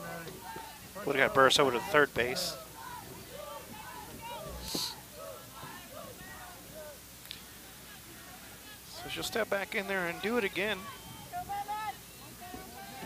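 Young women shout and cheer across an open field.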